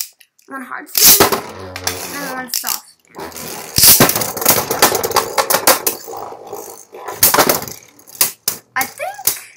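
Spinning tops whir and rattle against a plastic bowl.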